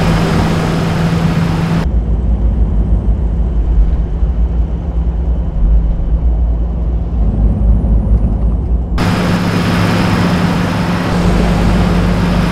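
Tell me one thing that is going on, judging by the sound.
Tyres roar steadily on the road at speed.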